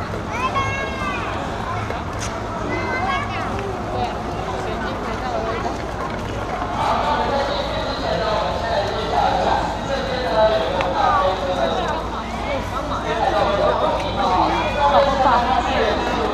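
Footsteps shuffle on a concrete floor.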